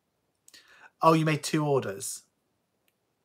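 A young man speaks calmly and close to the microphone.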